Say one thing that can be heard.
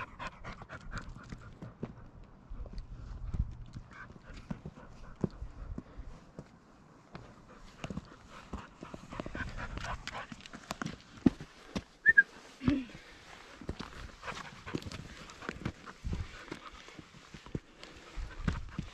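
Boots scuff and crunch on rock.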